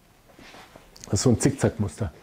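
An older man speaks with animation into a microphone.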